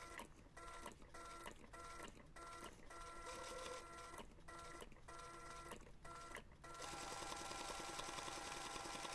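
A sewing machine whirs steadily as it stitches, stopping and starting in short bursts.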